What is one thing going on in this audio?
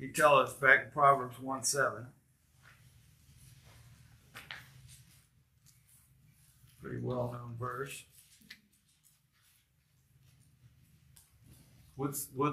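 A middle-aged man speaks calmly into a microphone in a room with some echo.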